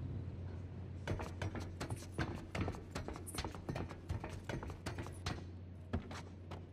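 Footsteps thud on a metal ladder.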